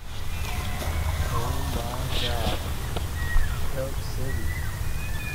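Elk call out with high, wavering squeals.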